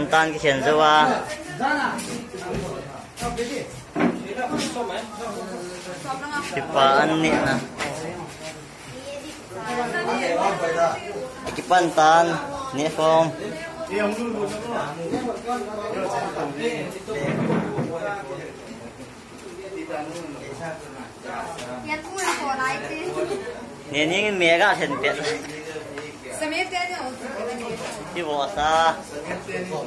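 Young men and women talk and chatter nearby.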